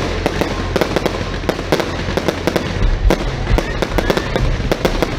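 Fireworks rumble and boom low.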